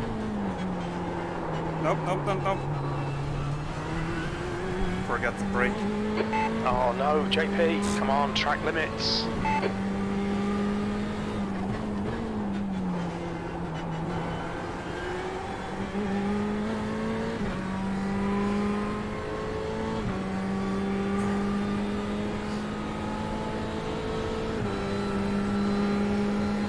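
A racing car engine drones and shifts through gears, its pitch rising and dropping.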